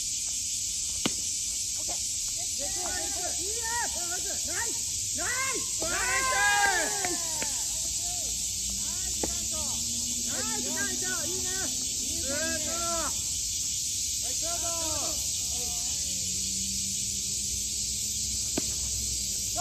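A bat cracks against a baseball outdoors.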